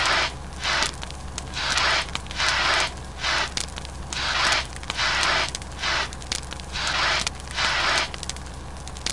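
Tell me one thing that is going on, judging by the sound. A fire extinguisher sprays in short hissing bursts.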